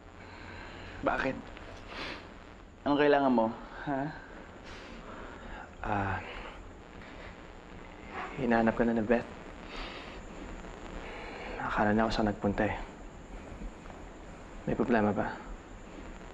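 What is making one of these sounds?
A young man speaks quietly and haltingly, close by.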